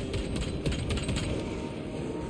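Gunfire rattles in rapid bursts in a video game.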